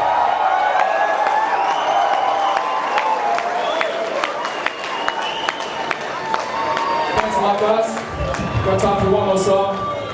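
Live music plays loudly in a large echoing hall.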